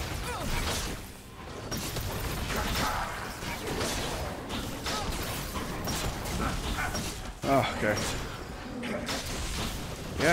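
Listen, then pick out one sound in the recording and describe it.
Game weapons clash and strike in quick bursts.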